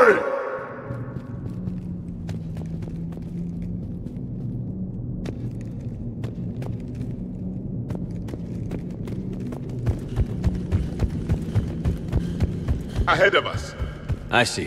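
Boots crunch on gravel.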